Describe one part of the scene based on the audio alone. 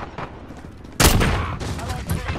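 A gun fires a single loud blast.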